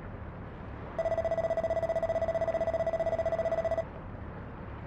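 Rapid electronic blips chatter as game dialogue text types out.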